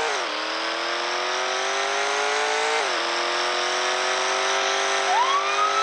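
A car engine roars steadily, dropping in pitch as it shifts gears and then climbing again.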